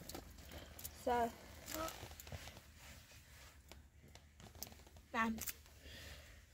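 Children speak softly and briefly nearby.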